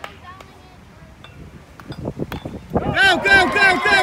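A bat strikes a ball with a sharp crack.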